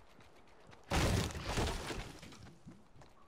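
A pickaxe strikes a tree trunk with sharp chopping knocks.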